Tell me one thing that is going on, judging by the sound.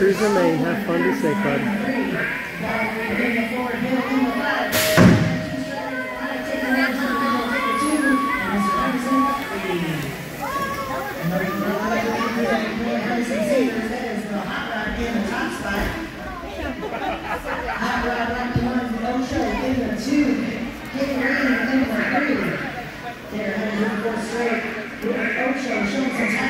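A crowd talks and cheers in a large echoing hall.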